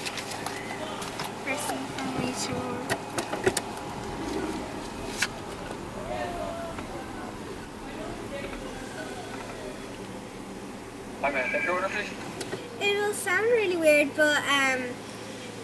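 A young girl talks and laughs excitedly close by.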